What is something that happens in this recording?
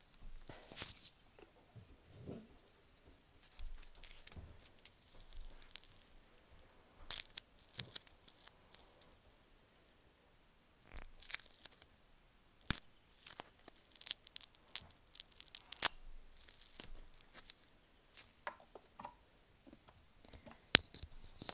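Fingers crinkle and pick at something small close to a microphone.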